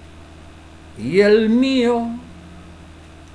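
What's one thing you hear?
A middle-aged man sings a short drawn-out phrase close to a microphone.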